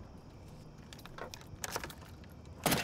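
A key clicks and turns in a car's ignition.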